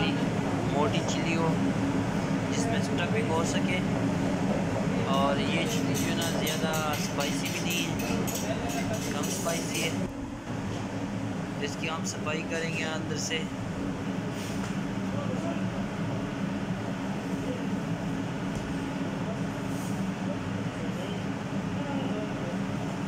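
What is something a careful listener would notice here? Chili peppers rub and squeak softly as a hand picks them up from a metal surface.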